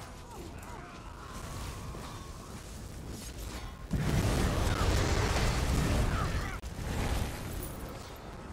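Magic spells crackle and boom in a game battle.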